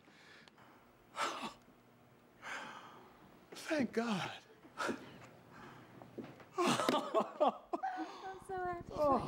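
A young man laughs and talks excitedly on a phone, close by.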